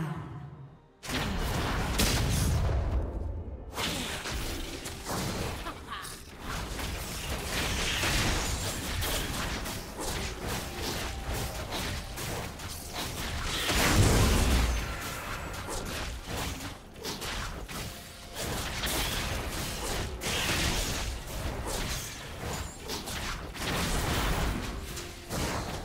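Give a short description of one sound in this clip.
Video game battle effects whoosh, crackle and boom.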